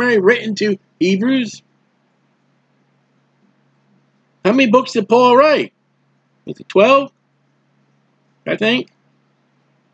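A man speaks calmly and closely into a microphone, in short phrases with pauses.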